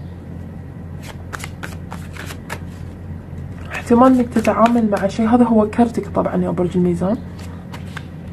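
Playing cards tap and click softly.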